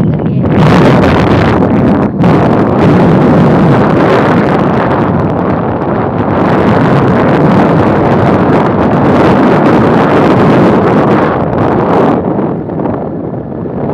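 Wind roars loudly against the microphone.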